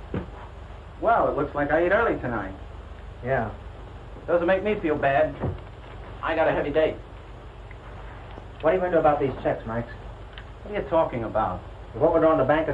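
A young man answers calmly nearby.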